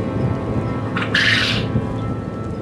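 A bird gives a sudden loud squawk.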